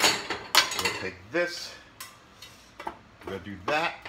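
A metal lid clanks onto a frying pan.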